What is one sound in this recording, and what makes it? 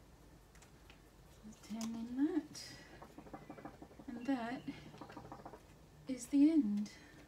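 A paper card rustles as it is moved about.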